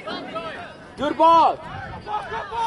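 A young man yells loudly nearby.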